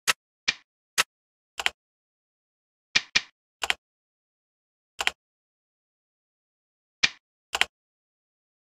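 Short electronic menu beeps click now and then.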